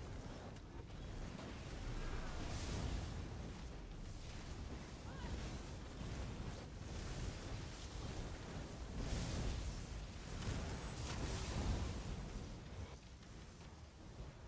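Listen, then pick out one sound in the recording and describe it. Lightning bolts crack loudly.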